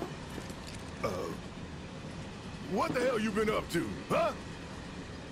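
A man speaks gruffly and angrily, close by.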